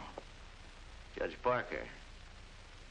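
A second man laughs.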